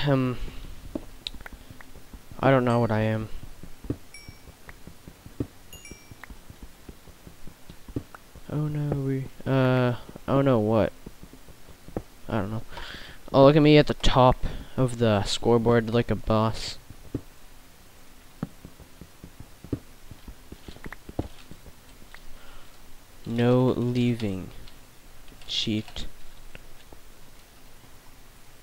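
A pickaxe chips at stone with quick, repeated taps.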